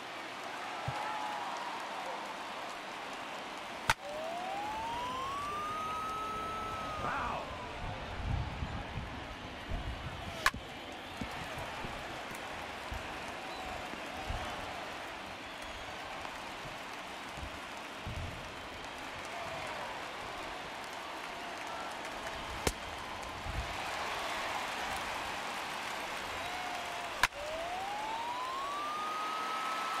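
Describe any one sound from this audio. A stadium crowd murmurs.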